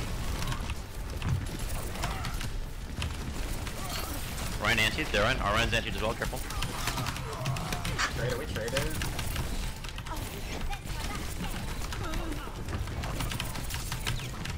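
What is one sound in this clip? Video game pistols fire in rapid bursts.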